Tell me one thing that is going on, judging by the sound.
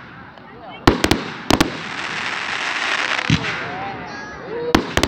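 Fireworks crackle and fizz after bursting.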